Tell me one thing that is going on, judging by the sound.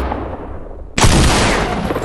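A shotgun fires a loud blast.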